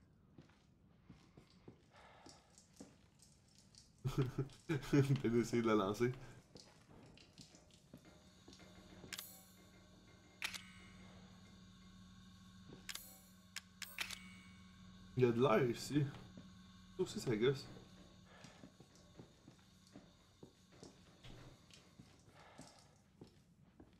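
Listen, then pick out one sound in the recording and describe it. Footsteps creak slowly on wooden floorboards.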